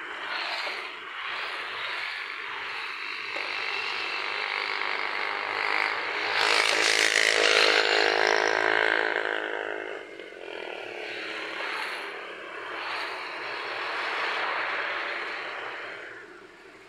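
Motorbikes and cars pass by on a road outdoors.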